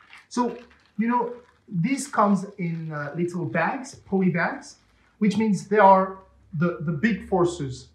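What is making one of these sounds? Plastic packaging crinkles in someone's hands.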